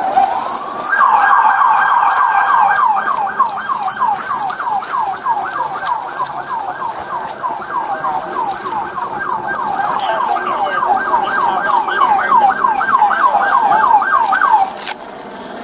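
A police siren wails rapidly nearby.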